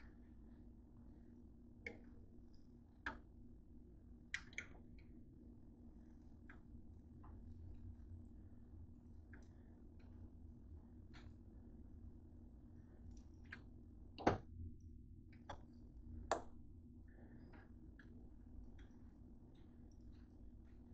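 Fingers tap and rustle against a soft flatbread.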